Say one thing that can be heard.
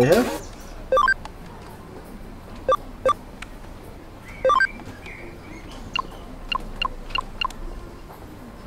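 Short electronic menu blips sound in quick succession.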